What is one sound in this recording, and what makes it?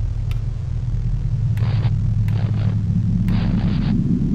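A television knob clicks as it turns.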